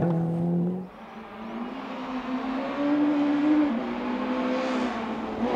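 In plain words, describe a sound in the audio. A rally car engine revs and grows louder as it approaches.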